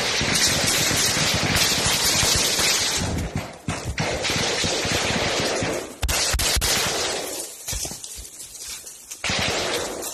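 Branches rustle and snap as someone pushes through undergrowth.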